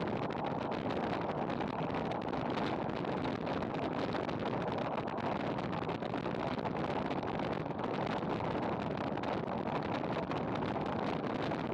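Wind rushes loudly past while riding fast downhill outdoors.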